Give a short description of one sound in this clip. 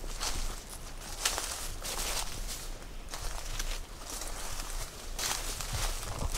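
Leafy branches rustle and swish close by as they brush past.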